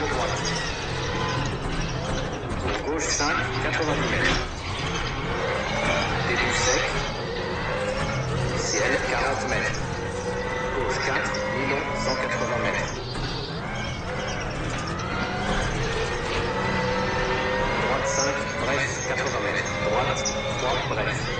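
A rally car engine revs hard and rises in pitch through the gears.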